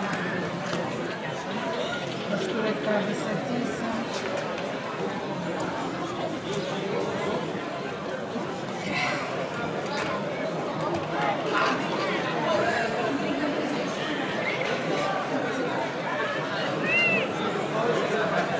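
A large outdoor crowd of men and women chatters and shouts.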